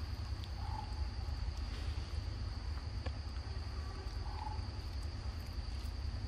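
A small monkey sucks and slurps a drink through a straw.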